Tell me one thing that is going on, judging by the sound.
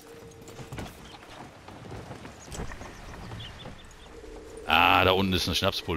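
Boots thump on wooden boards.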